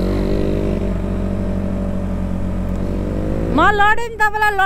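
A motorcycle engine hums steadily.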